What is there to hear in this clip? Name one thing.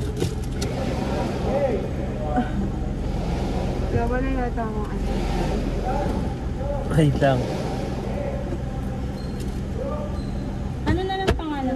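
A car engine hums steadily at idle.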